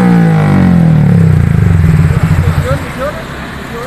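A motorcycle engine idles loudly nearby.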